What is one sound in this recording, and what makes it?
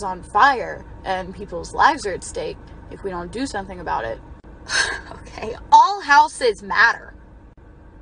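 A young woman talks with animation, close by.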